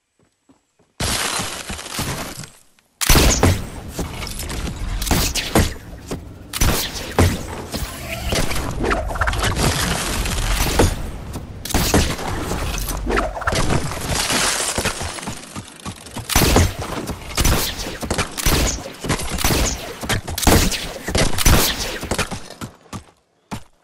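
Wooden walls and ramps snap into place in quick, clattering bursts.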